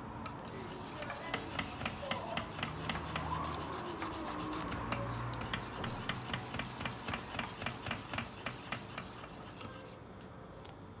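A wire whisk beats liquid rapidly against a metal bowl.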